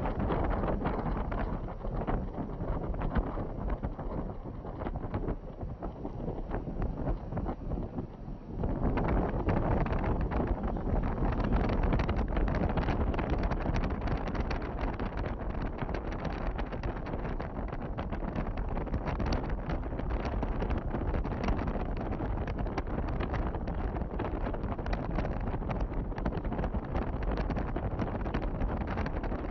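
A car drives along a road with a steady rumble of tyres and engine.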